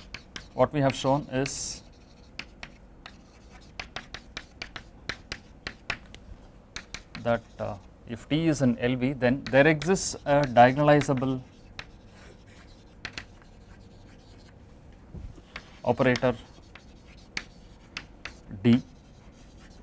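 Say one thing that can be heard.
A man speaks calmly, as if lecturing, close to a microphone.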